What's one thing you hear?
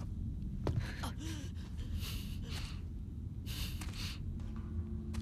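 A woman breathes heavily.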